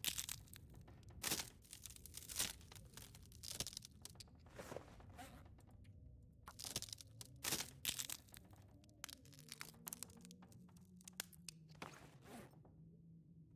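Twigs rustle and snap as sticks are gathered.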